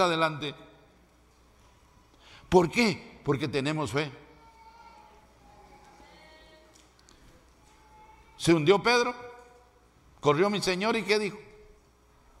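A middle-aged man preaches forcefully through a microphone in bursts, with pauses between phrases.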